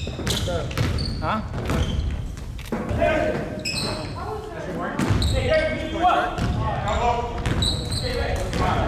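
A basketball bounces on a hardwood floor, echoing in a large hall.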